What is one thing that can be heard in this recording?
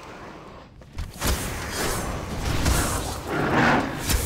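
Spells crackle and burst loudly in a fight.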